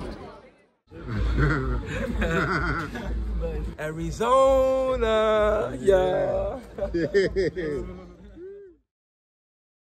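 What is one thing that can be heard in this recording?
A young man talks and laughs with animation, close by.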